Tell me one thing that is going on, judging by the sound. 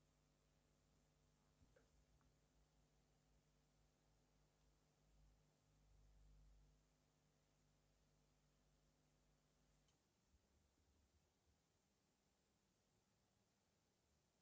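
Tweezers tap and click faintly against small plastic parts.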